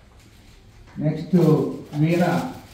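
A man speaks into a microphone over a loudspeaker in a room.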